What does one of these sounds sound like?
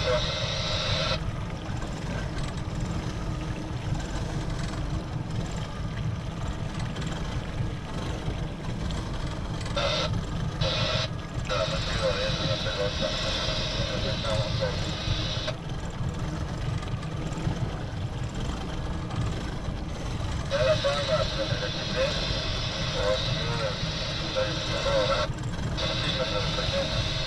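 Twin outboard engines rumble steadily.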